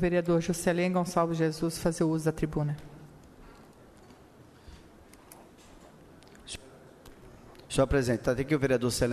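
A middle-aged woman reads out calmly through a microphone.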